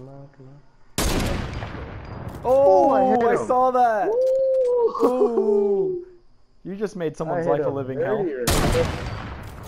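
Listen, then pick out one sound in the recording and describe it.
A rifle fires two loud, sharp shots.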